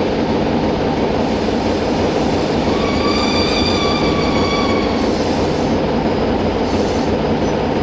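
A train rumbles as it rolls slowly into a station.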